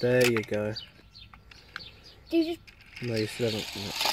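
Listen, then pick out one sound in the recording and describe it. Plastic launchers snap as they fire toy cars.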